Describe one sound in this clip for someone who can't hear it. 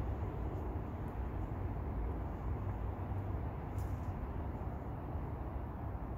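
Boots crunch through dry leaves and twigs.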